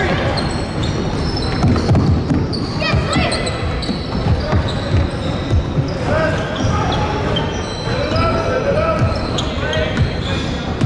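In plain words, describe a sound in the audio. A basketball bounces with hollow thuds.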